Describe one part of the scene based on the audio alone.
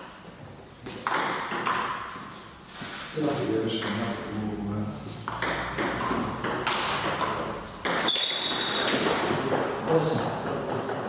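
A table tennis ball clicks back and forth off paddles and a table.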